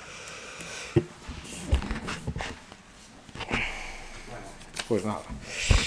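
A man handles a microphone with knocks and thumps close up.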